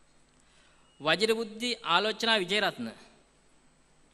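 A woman announces over a loudspeaker in a large hall.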